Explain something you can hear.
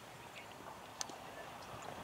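A cricket bat strikes a ball with a sharp crack.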